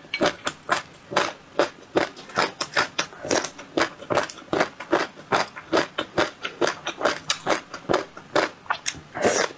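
A young woman chews food wetly and loudly close to a microphone.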